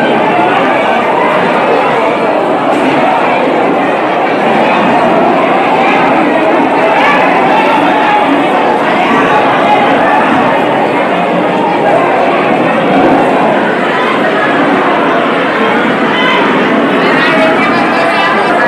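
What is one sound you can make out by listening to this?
A crowd of men and women shouts and talks loudly all at once in an echoing hall.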